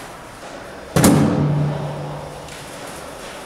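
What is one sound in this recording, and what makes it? Something drops into a bin with a thud.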